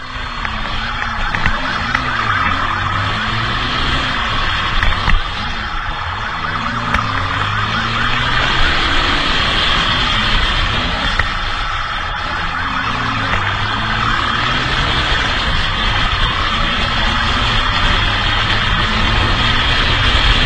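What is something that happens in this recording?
A motorcycle engine hums steadily up close, rising and falling in pitch.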